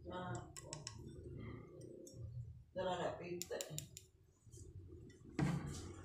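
Metal parts of a door lock clink as they are handled.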